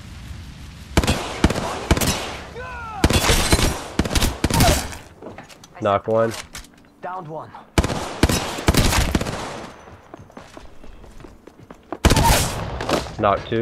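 Gunfire bursts rapidly, with sharp cracking shots.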